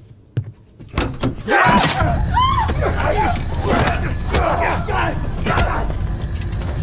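People scuffle and struggle loudly.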